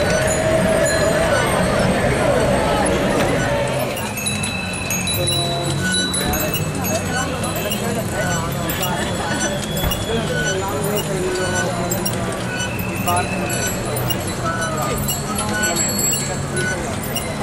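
Many bicycles roll and rattle along a paved street.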